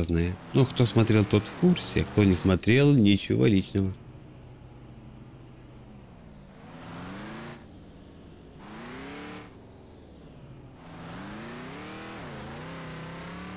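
A truck engine hums and revs up and down as it drives.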